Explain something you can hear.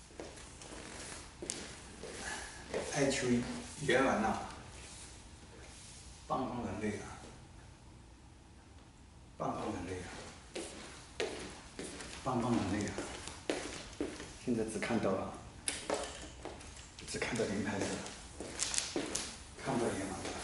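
A middle-aged man speaks calmly in an echoing room.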